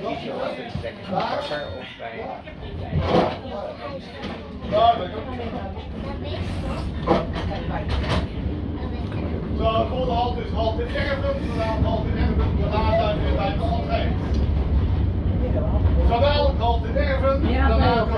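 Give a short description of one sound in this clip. A tram rumbles steadily along its tracks, growing louder.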